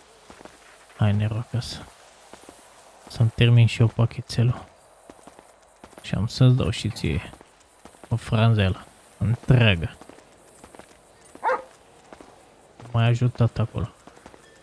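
A dog barks loudly in short bursts.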